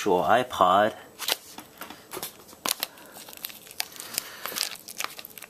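Plastic film crinkles and crackles as it is peeled off a box.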